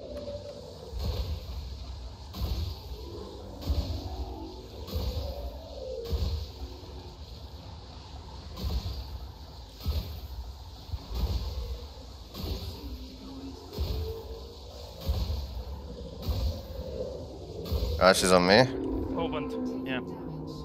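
Laser cannons fire in short, repeated bursts.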